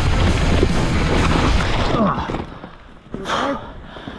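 A bicycle crashes down onto dry leaves and dirt.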